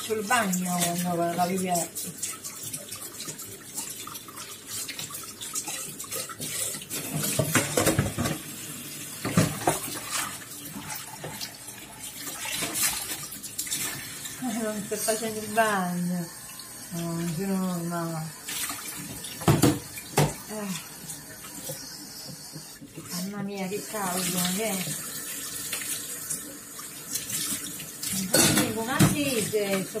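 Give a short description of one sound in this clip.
Water runs from a tap into a metal sink.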